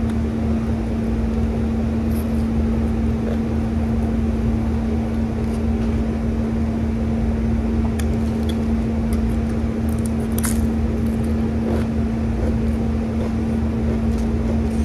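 A woman crunches and chews food close by.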